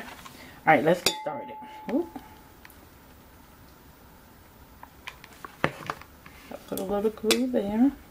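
A glass jar clinks and knocks lightly against a hard surface.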